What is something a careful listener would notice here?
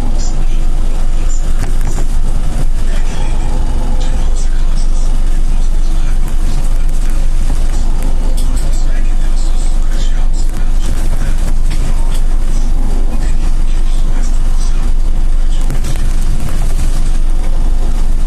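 The trolleybus body rattles and clatters over the road.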